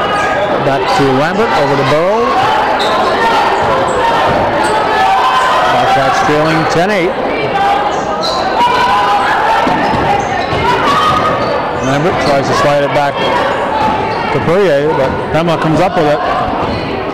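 Sneakers squeak sharply on a hardwood floor in a large echoing gym.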